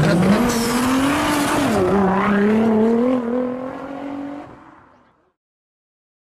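A car engine revs hard, then fades away.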